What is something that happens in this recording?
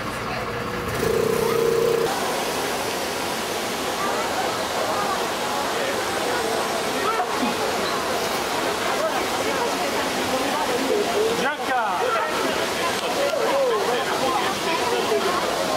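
A crowd of men and women chatter all around outdoors.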